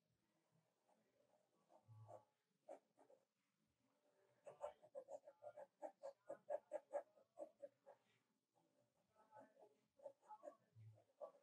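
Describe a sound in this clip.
A pencil scratches and rubs on paper.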